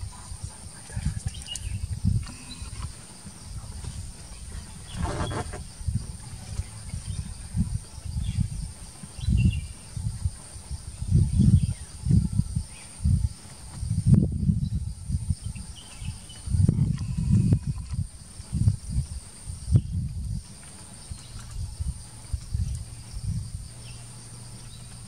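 An Asian elephant gives deep, low rumbles.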